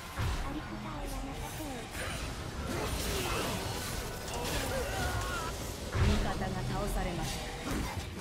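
Game effects crackle and clash during a fight.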